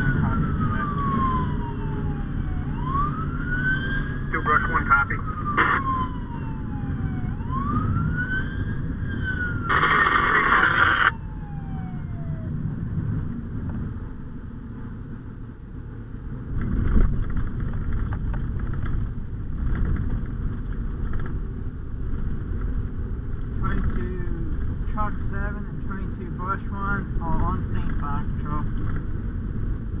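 An engine rumbles steadily as a vehicle drives along a road.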